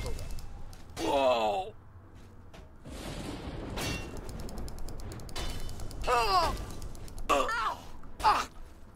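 Magic spells whoosh and sizzle.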